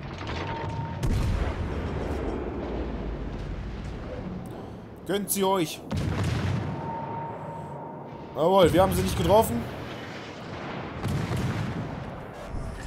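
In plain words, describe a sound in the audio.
Heavy naval guns fire with deep, rumbling booms.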